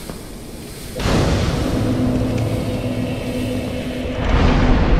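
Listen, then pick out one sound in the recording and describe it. A fire flares up with a loud whoosh.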